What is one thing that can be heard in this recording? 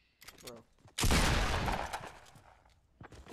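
A gun fires a burst of loud shots.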